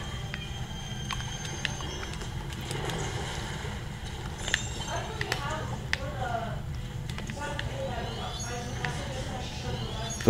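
Cartoonish ink shots splat and squish in quick bursts.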